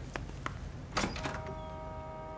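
A door opens with a short rattle.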